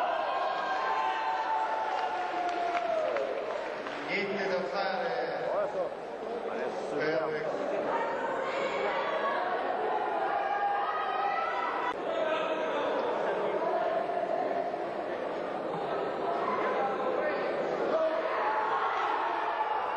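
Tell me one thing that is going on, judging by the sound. A crowd of men cheers and shouts loudly.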